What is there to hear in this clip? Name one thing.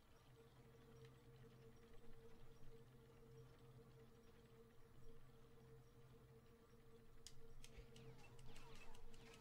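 A low magical hum pulses steadily.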